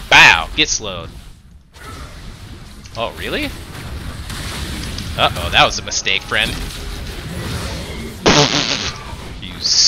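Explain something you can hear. Fighting sound effects from a video game clash and whoosh.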